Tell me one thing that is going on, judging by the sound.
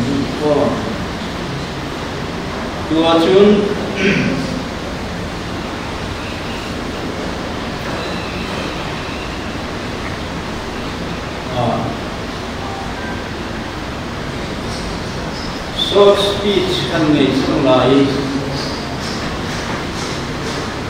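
An elderly man reads out slowly through a microphone, with pauses.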